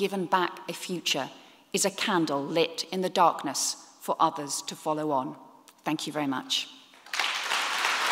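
A woman speaks steadily into a microphone in an echoing hall.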